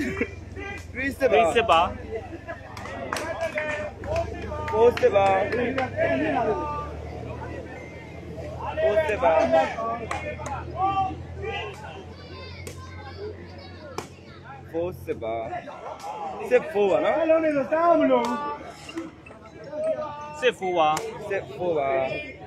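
Young men shout and call out loudly nearby.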